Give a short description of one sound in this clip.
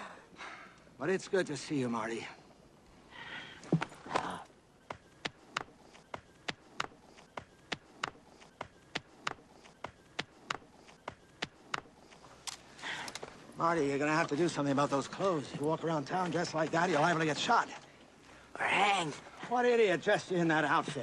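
An elderly man speaks with excitement close by.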